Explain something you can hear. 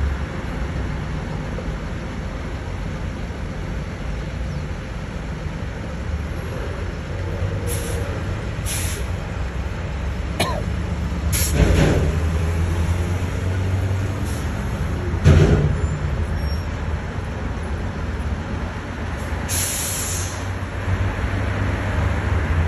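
Traffic engines rumble and idle steadily outdoors.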